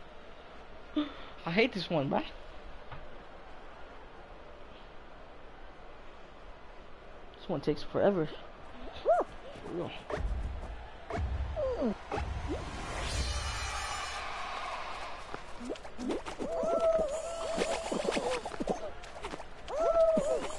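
Cartoon game characters make squeaky, bouncy sound effects.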